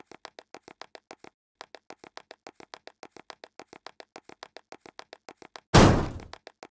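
Quick footsteps clank steadily on a metal ladder.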